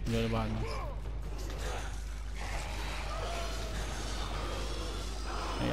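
A warrior's blades slash and whoosh through the air.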